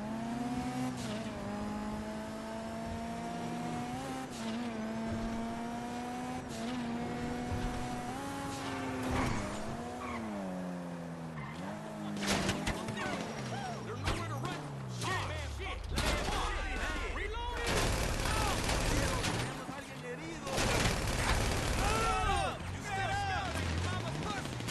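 A car engine hums steadily and rises and falls in pitch as it speeds up and slows down.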